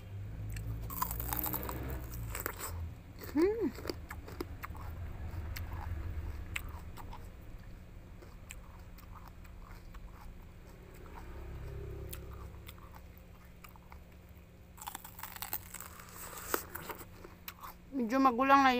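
A young woman chews loudly and wetly close to a microphone.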